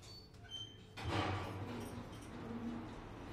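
Elevator doors slide open with a rumble.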